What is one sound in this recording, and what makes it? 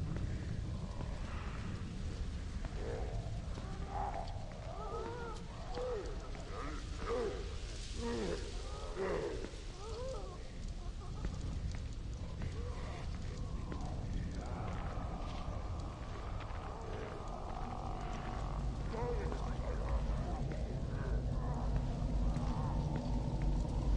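Soft footsteps shuffle slowly over wet pavement.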